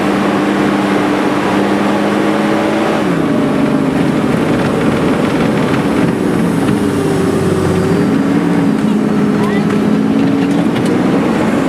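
A vehicle's cabin rattles and bumps over rough ground.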